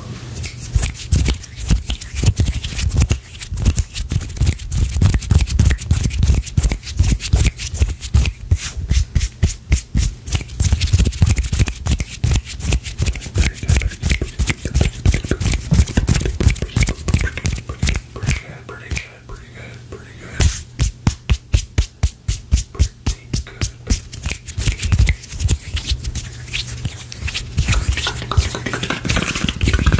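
A middle-aged man whispers softly close to a microphone.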